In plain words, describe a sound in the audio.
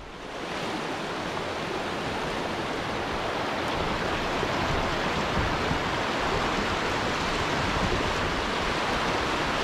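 Water rushes loudly over rocks in a shallow rapid.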